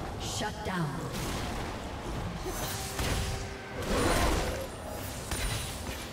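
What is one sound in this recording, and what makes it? Game sound effects of spells and weapon blows clash in a fantasy battle.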